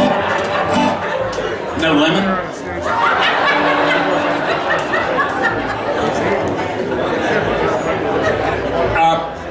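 A band plays acoustic guitars and upright bass through loudspeakers.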